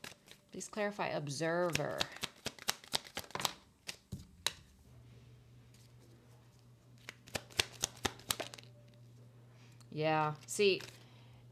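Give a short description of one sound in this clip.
Playing cards snap and riffle as they are shuffled.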